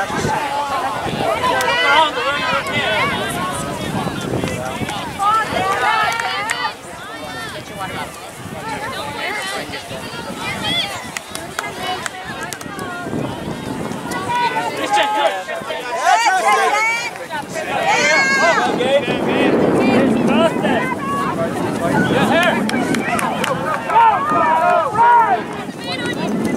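A crowd of spectators nearby shouts and cheers with excitement.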